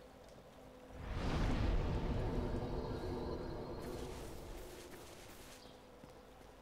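A deep rushing whoosh swells and slowly fades.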